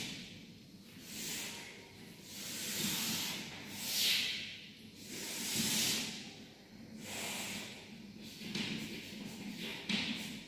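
Chalk scrapes and taps against a board in long strokes.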